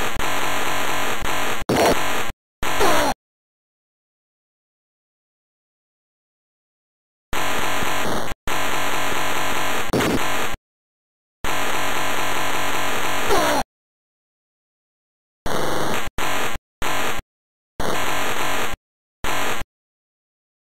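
Chiptune game music plays in short bursts separated by silences.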